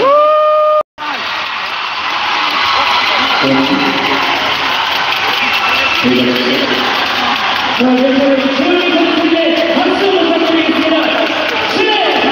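A large crowd cheers and chants in an echoing arena.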